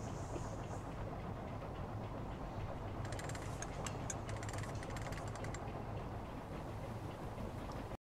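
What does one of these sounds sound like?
A boat's motor hums steadily.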